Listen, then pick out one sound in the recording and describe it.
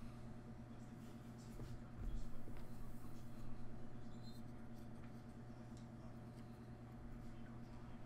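A small plastic game piece slides and taps on a soft mat.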